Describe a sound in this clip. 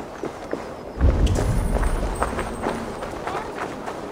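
A deep rumbling whoosh swells up and fades.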